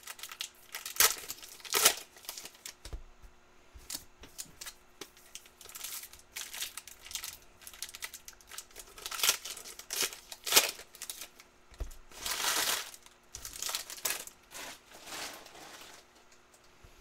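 Foil wrappers crinkle and rustle as they are torn open.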